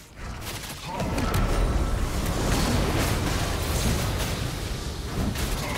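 Game spell effects burst and crackle in quick succession.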